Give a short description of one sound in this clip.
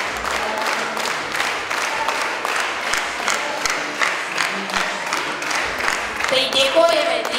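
A large crowd claps steadily in an echoing hall.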